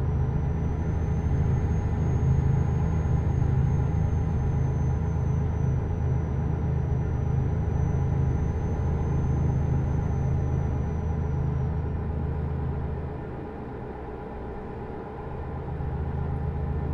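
A truck engine drones steadily, dipping briefly before rising again.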